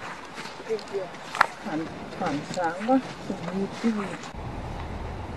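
Young women chat softly outdoors.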